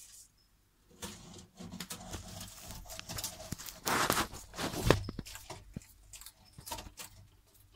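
A lizard munches and tears at leaves close by.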